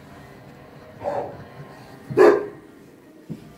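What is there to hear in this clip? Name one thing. A dog yelps and whines close by.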